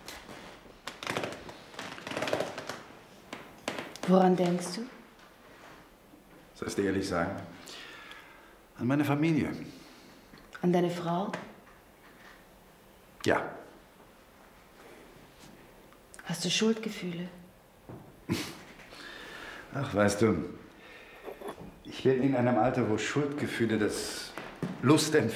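A man speaks calmly and slowly, close by.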